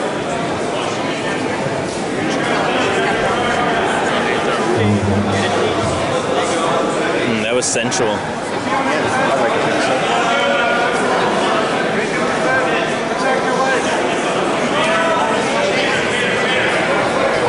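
Two wrestlers scuff and shift on a mat.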